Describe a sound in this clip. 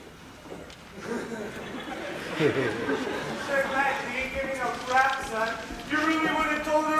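A young man speaks loudly from a stage in a large hall.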